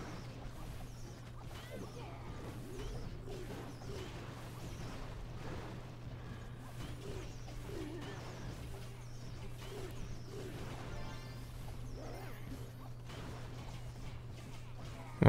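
Game battle sounds crash and clash continuously.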